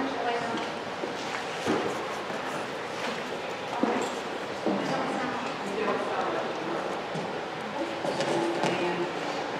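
Footsteps shuffle on a carpeted floor.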